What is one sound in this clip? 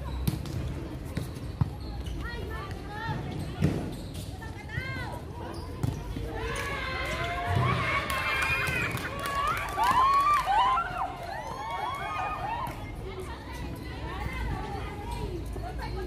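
Young women call out and shout to each other outdoors.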